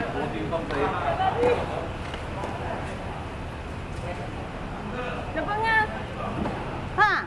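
Tennis balls are struck with rackets, echoing in a large open hall.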